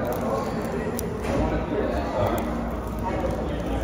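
A woman bites into crisp pastry with a crunch.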